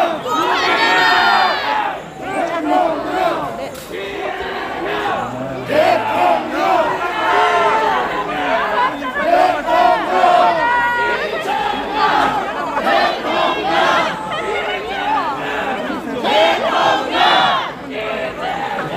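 A dense crowd of men and women talk and shout excitedly close by.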